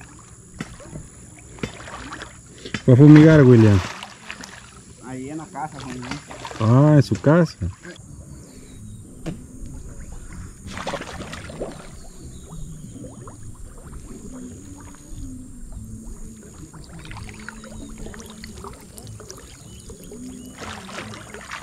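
Water splashes and laps close by as a person wades.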